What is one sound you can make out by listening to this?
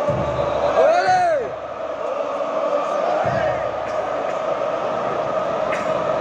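A large stadium crowd chants and sings loudly in unison, echoing across the open stands.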